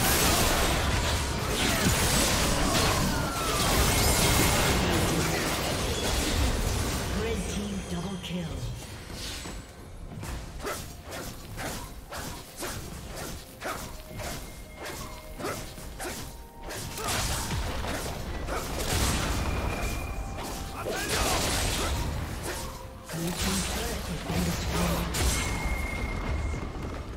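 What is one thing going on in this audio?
Game combat sound effects clash and crackle with quick hits and spell blasts.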